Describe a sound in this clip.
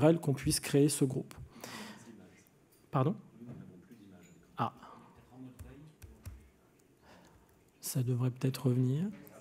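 A man speaks calmly into a microphone in a large room with some echo.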